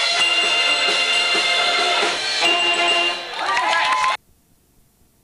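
A big band of saxophones and brass plays a lively tune.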